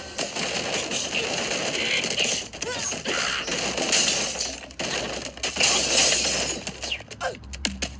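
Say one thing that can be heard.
Toy wooden blocks crash and tumble down in a game.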